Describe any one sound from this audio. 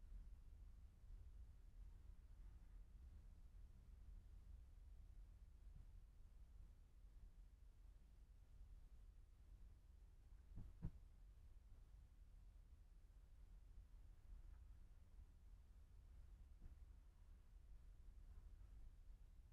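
A car drives slowly past nearby.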